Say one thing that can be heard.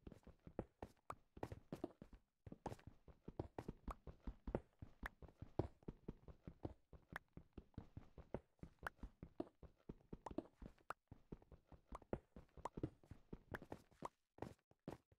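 A pickaxe chips rapidly at stone blocks, with crumbling thuds.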